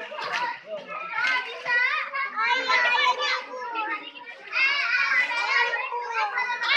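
Water splashes as children swim.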